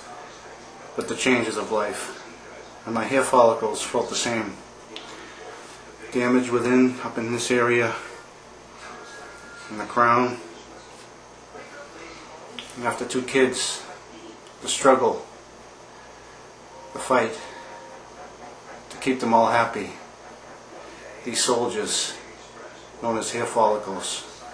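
A man talks close to the microphone in short bursts with pauses.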